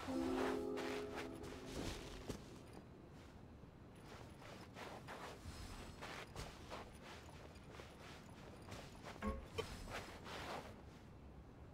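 Light footsteps tap and splash on shallow water.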